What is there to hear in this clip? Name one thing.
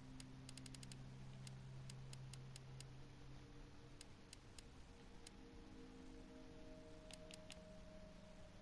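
Soft electronic menu clicks tick as a selection moves up and down.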